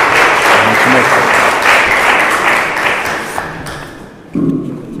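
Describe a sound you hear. An audience applauds, then the clapping dies away.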